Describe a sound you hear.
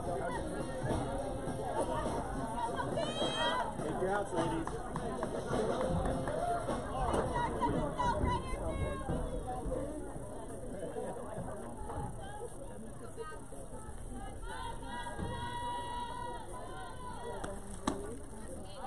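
Young women cheer and chant together from a distance outdoors.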